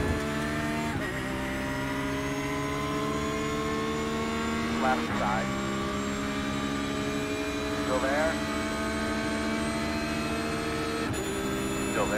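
A racing car's gearbox shifts up with a brief drop in engine pitch.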